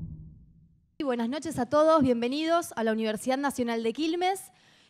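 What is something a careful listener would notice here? A woman speaks calmly into a microphone over loudspeakers.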